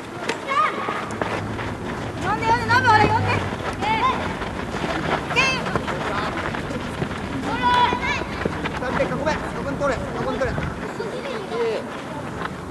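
A ball is kicked with dull thuds.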